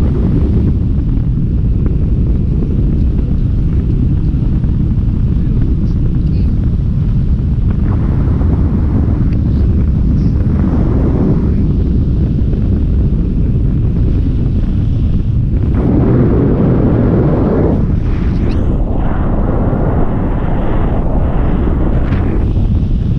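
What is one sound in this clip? Wind roars loudly against a microphone outdoors.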